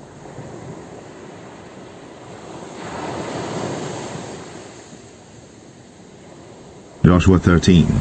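Waves wash onto a pebble beach.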